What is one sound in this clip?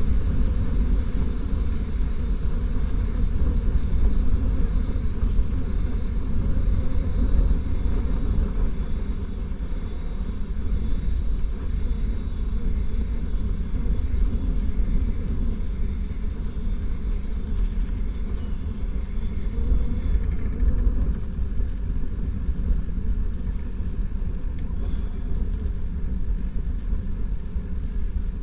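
Strong wind rumbles and buffets steadily, outdoors.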